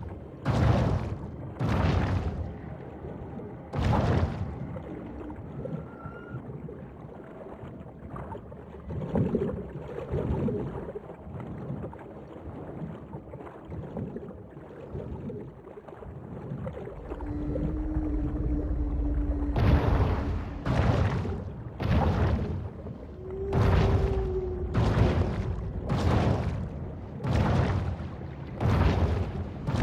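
Water swirls and rushes steadily underwater.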